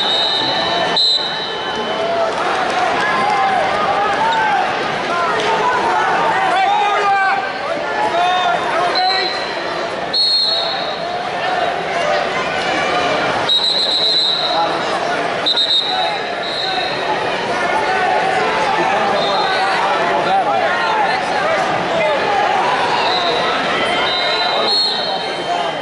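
Whistles blow sharply several times.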